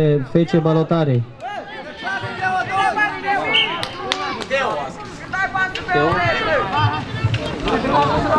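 A crowd of young people chatters and shouts outdoors.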